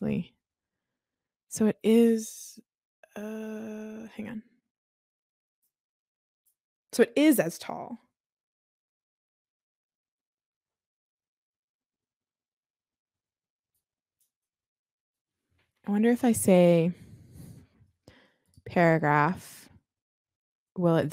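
A young woman talks with animation through a close microphone, in short bursts with pauses.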